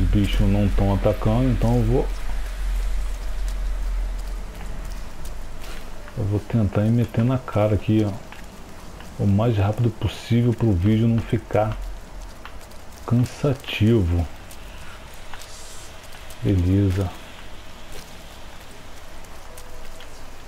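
Heavy rain falls.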